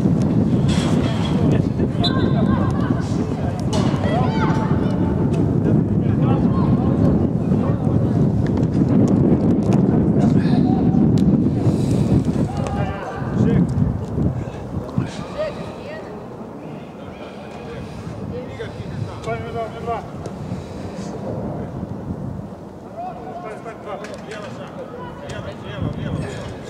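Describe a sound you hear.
Young men shout to each other at a distance outdoors.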